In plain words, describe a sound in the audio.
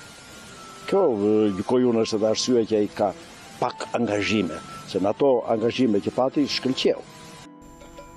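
An elderly man speaks calmly into a microphone close by.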